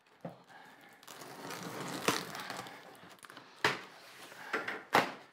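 Packing tape rips and peels off a cardboard box.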